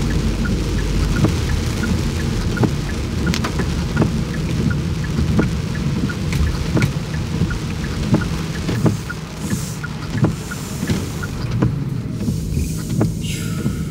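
Windscreen wipers sweep back and forth across wet glass.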